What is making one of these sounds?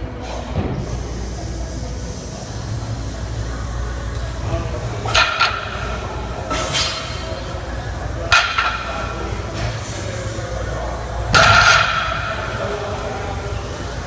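Heavy weight plates thud and clank against a floor.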